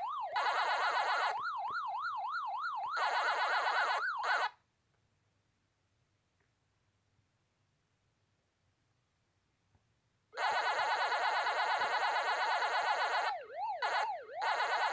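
An arcade game plays a rising and falling wailing tone.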